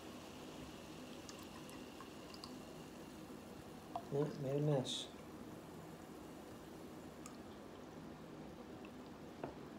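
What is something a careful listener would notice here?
Soda pours and fizzes into a glass.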